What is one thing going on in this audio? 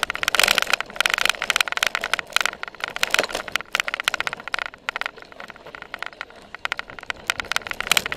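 A bicycle rattles and clatters over bumpy ground.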